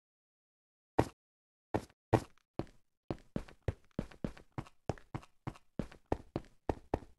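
A pickaxe taps and chips at stone in quick, repeated knocks.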